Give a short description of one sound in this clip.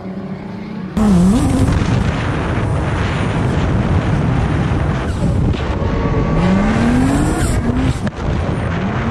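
Tyres screech on asphalt while sliding.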